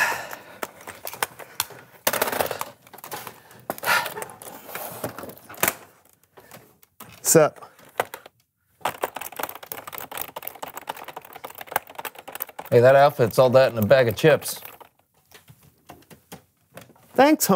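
Computer keys clatter in quick taps.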